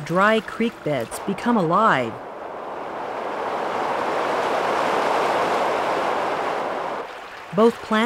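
Muddy floodwater rushes and churns over a wide stream bed.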